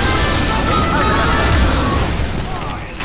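A flamethrower roars in a steady rush of flame.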